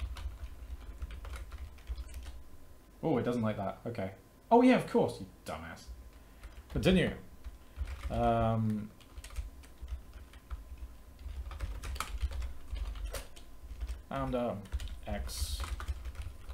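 Keys clatter on a keyboard.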